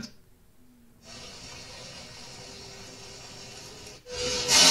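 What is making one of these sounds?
Water bubbles and boils in a pot.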